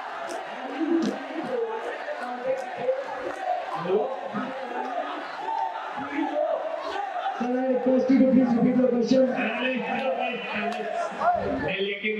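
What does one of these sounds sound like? A young man speaks into a microphone over a loudspeaker in an echoing hall.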